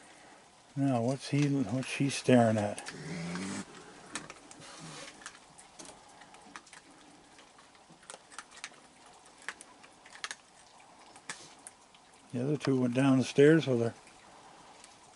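Raccoons crunch on dry food with small clicking bites.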